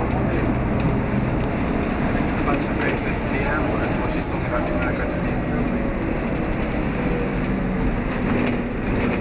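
A bus engine rumbles steadily while the bus drives along.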